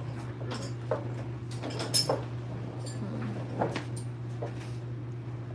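Metal parts clink and knock as a mechanic handles them.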